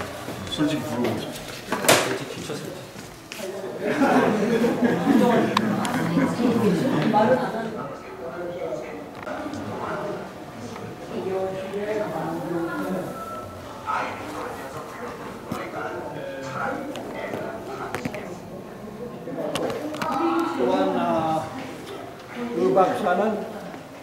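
Young men talk and chatter nearby.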